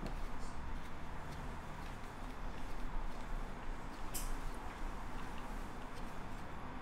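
Small metal parts click and tap as hands work on a bicycle wheel.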